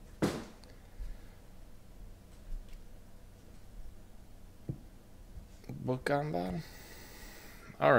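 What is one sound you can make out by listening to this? Cards rustle and tap as they are handled.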